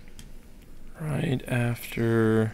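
A man talks with animation over an online call microphone.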